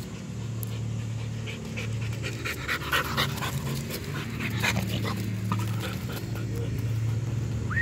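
Dry leaves crunch and rustle under a dog's paws close by.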